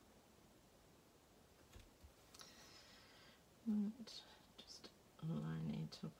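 Paper rustles softly as it is peeled and handled.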